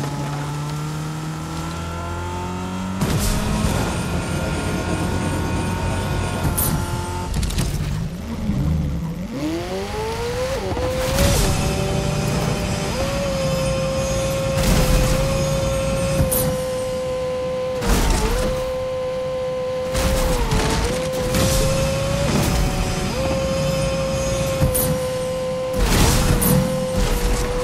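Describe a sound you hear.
A game car's engine hums steadily and revs up as it drives.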